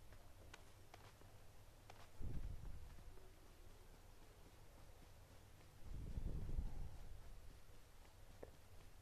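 Quick footsteps rustle through grass.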